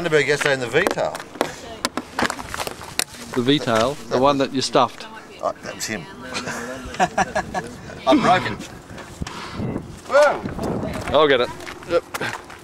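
A middle-aged man talks cheerfully up close.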